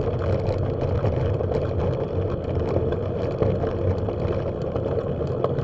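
Tyres roll and crunch over a rough dirt track.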